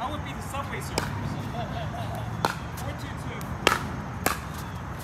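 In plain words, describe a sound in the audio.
Paddles hit a ball with sharp hollow pops.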